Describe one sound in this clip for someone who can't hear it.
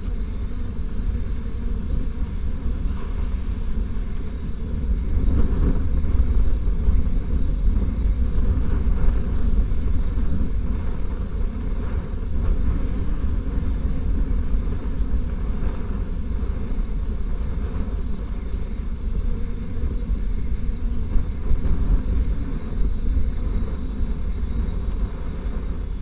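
Wind rumbles steadily across a microphone outdoors.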